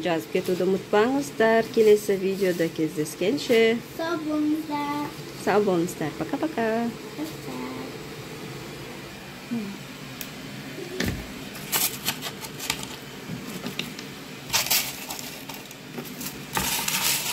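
Soft dough rustles as dumplings are pinched and placed.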